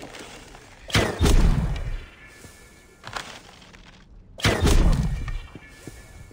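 Heavy booming impacts hit and rumble away.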